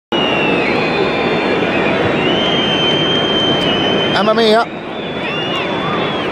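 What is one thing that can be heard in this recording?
A large stadium crowd roars and whistles steadily outdoors.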